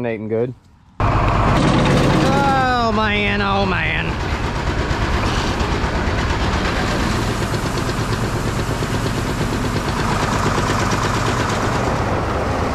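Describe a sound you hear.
A grain auger motor rumbles steadily.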